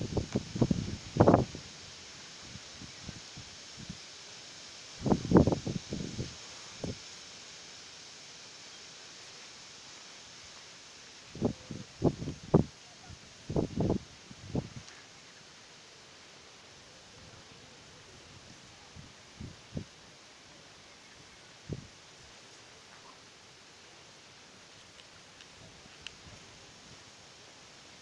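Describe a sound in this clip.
Wind blows in gusts over open water.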